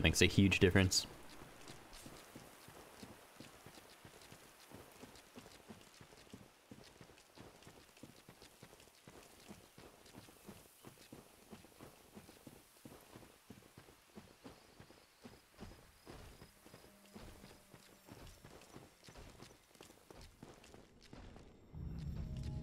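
Armoured footsteps tread steadily over grass and earth.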